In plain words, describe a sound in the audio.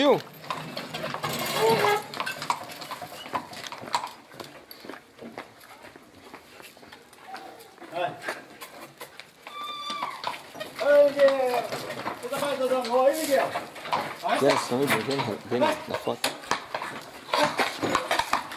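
Horse hooves clop on paving.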